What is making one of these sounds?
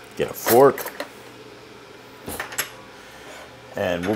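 A drawer slides open and shut.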